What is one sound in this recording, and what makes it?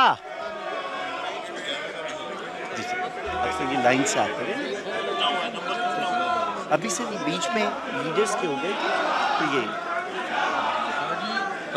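Many men talk over one another in a large echoing hall.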